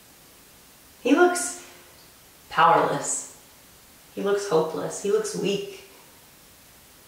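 A young woman speaks calmly and clearly nearby, with short pauses.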